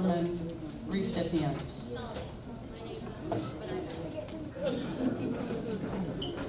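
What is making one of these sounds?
An older woman speaks calmly through a microphone.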